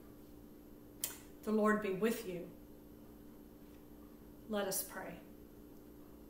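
A middle-aged woman speaks calmly and close by, in short phrases.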